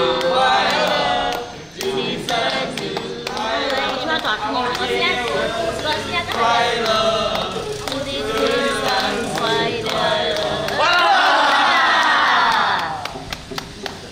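A group of men sings loudly together nearby.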